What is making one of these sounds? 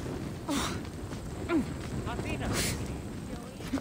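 A campfire crackles close by.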